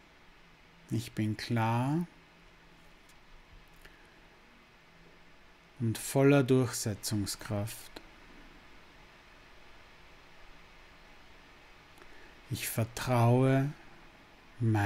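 A man speaks calmly and slowly, close to a microphone, with long pauses.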